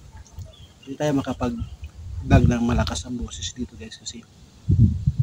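A man speaks close by, casually.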